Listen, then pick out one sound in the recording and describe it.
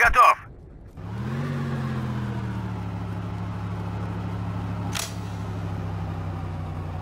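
A tank engine rumbles and revs.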